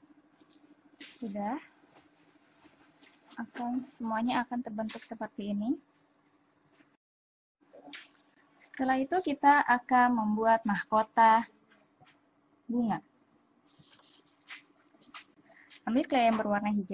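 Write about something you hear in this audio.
A woman talks calmly and explains, close to a microphone.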